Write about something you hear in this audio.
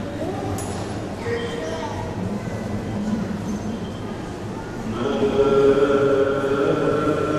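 A choir of men chants together in a large echoing hall, swelling louder toward the end.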